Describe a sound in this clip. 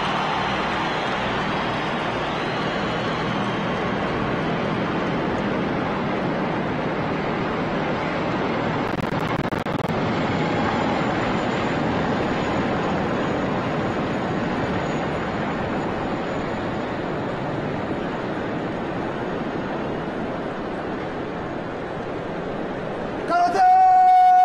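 A large military transport helicopter's rotor thumps as it flies low overhead.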